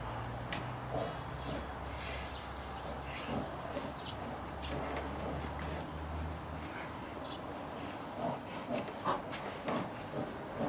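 Bears' paws thump and scuff on wooden boards.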